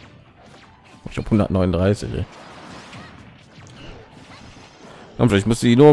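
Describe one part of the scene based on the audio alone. Video game fighters trade blows with sharp hit and blast sounds.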